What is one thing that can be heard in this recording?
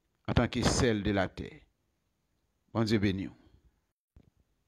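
A man speaks calmly and close to the microphone, in short phrases.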